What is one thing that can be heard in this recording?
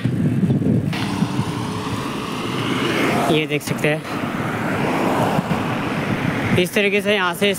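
A car drives past on the road.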